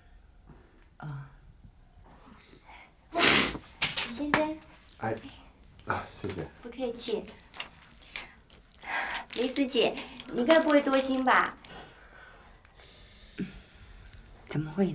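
A woman speaks quietly and calmly.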